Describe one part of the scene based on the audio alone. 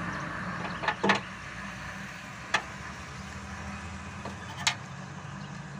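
Metal tools click sharply against engine parts.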